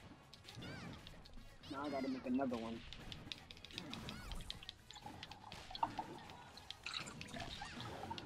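Punches and kicks land with sharp hits in a video game fight.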